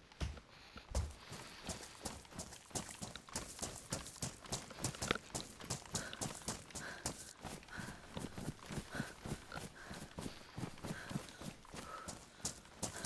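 Footsteps run quickly over grass and gravel.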